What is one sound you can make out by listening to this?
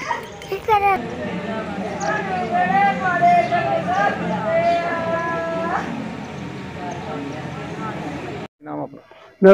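A group of women sing together in a slow, wailing chant.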